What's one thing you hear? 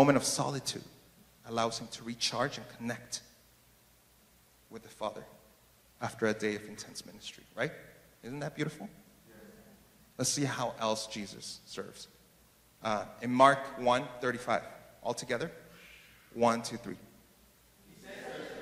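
A young man speaks calmly through a microphone in a large echoing hall, with pauses between phrases.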